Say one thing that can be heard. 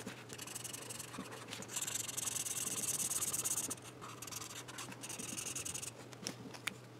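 A marker pen scratches softly across paper in short strokes.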